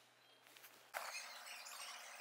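Fingers tap on a laptop keyboard.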